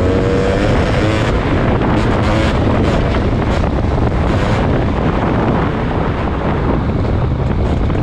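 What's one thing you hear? A motorcycle engine revs and roars up close.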